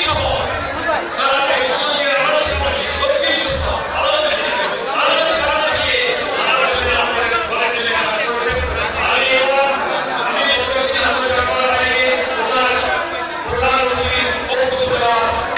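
A middle-aged man speaks loudly and with animation through a microphone and loudspeakers in an echoing room.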